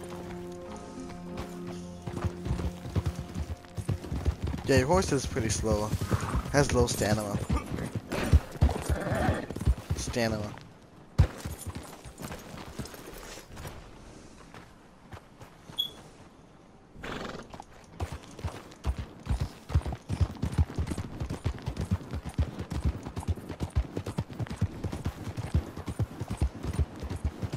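Horse hooves thud quickly on a dirt trail.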